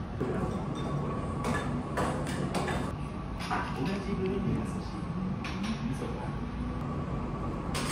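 A spoon clinks against a ceramic plate.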